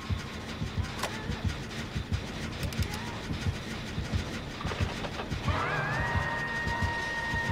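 A machine rattles and clanks as it is worked on.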